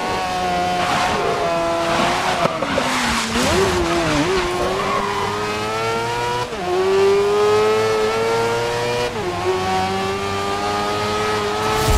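A racing car engine whines loudly, rising and dropping in pitch as it shifts gears.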